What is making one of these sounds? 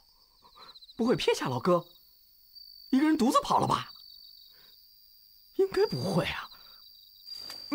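A young man speaks to himself in a worried voice.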